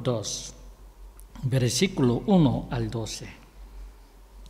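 A man speaks calmly into a microphone in a reverberant room.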